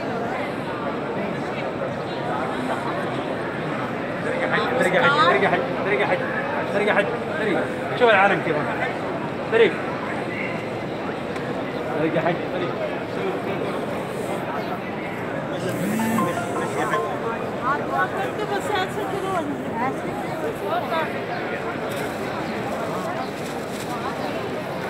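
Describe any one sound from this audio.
A large crowd murmurs and chatters all around, outdoors.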